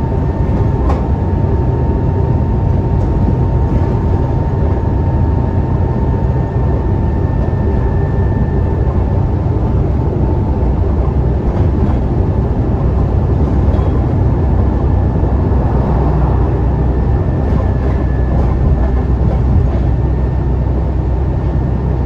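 Tyres roar on the road as a bus drives along.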